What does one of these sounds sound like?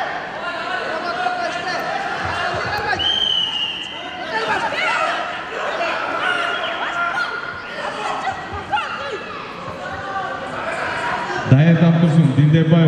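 Several men shout encouragement in an echoing hall.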